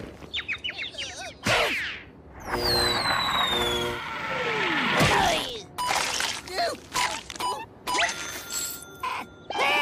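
A man speaks excitedly in a high, squeaky cartoon voice.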